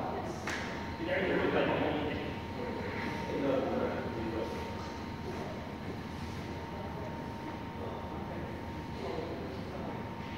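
Men talk at a distance in a large echoing hall.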